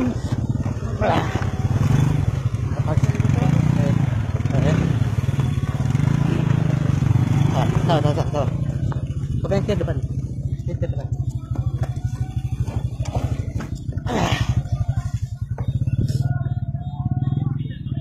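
A motorcycle engine runs with a steady low throb.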